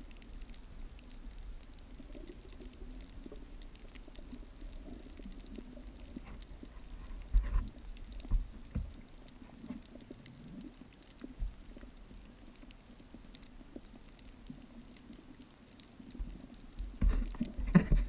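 Muffled water rumbles softly underwater.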